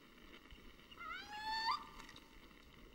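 A man cries out in a high, rising shriek.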